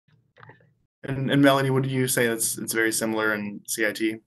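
A middle-aged man speaks calmly through an online call.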